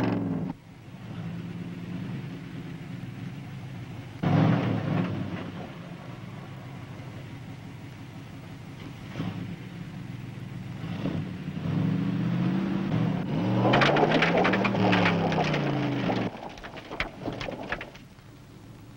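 A car engine roars and revs.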